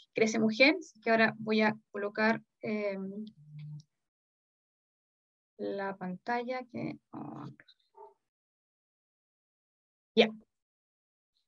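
A woman speaks calmly over an online call.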